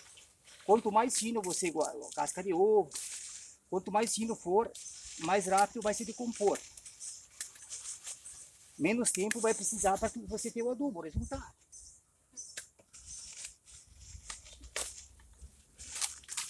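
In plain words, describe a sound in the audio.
Food scraps drop softly onto soil.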